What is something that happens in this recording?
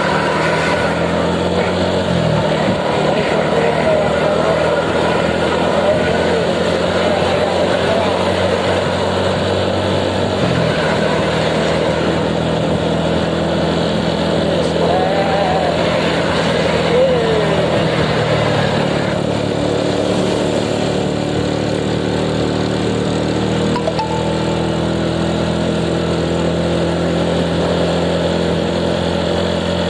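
A motorcycle engine hums steadily while riding, shifting pitch now and then.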